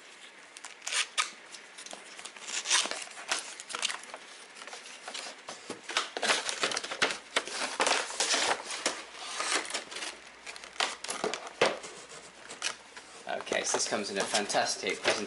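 Cardboard and plastic packaging rustles and crinkles as hands handle a box.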